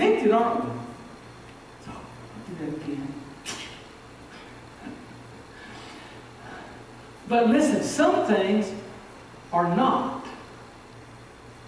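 An older man speaks with emphasis through a microphone, in a large room with some echo.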